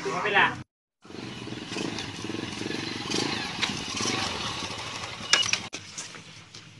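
A motorbike engine idles and putters.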